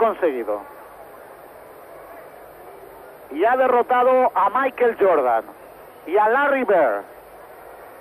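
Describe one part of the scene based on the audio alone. A man speaks loudly over a loudspeaker in a large echoing arena.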